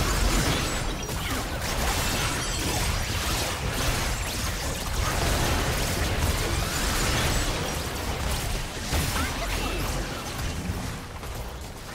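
Magic spells crackle and blast in a rapid fight.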